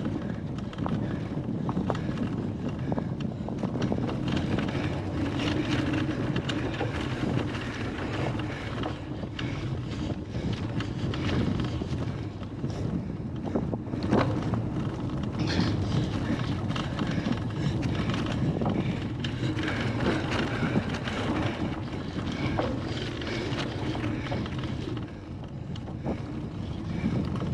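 Bicycle tyres roll and bump over a muddy grass track.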